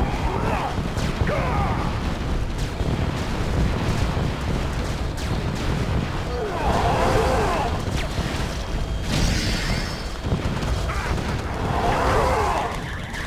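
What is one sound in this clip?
Gunfire and explosions rumble in a strategy game battle.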